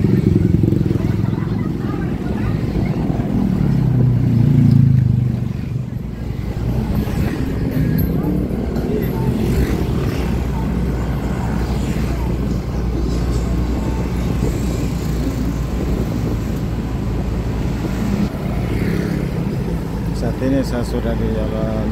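Motorbike engines hum past.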